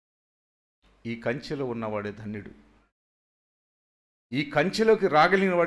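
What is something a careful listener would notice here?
A man speaks with emphasis through a microphone, with pauses between phrases.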